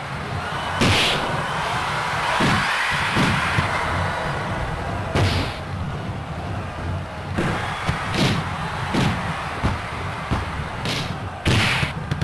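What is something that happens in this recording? A crowd cheers steadily in a large stadium.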